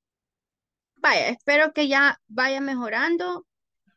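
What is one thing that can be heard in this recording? A woman speaks clearly through an online call.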